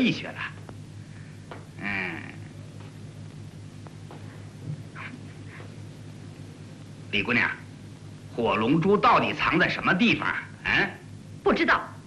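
A man speaks teasingly, close by.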